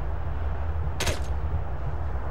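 A rifle fires a single sharp shot.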